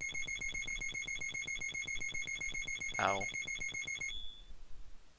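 Fast, high electronic beeps tick steadily as a game tallies points, then stop.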